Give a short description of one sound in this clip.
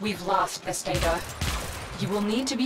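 A loud explosion bursts with crackling debris.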